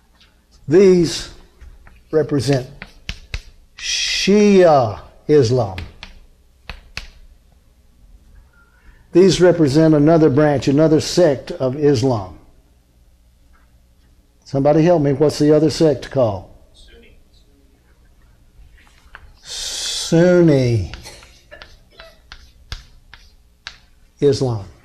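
An older man speaks with animation, as if lecturing, through a microphone.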